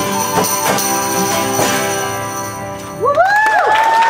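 An acoustic guitar plays a melody.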